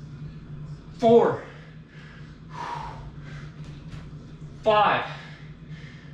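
A woman groans with effort, close by.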